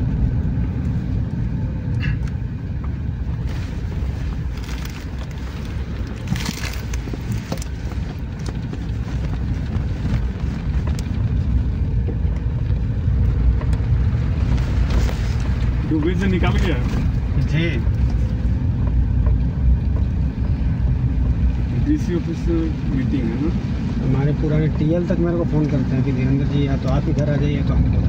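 A vehicle engine rumbles steadily as it drives along a rough road.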